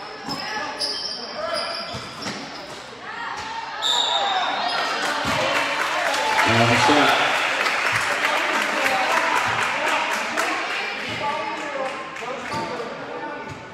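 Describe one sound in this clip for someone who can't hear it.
Basketball shoes squeak on a gym floor.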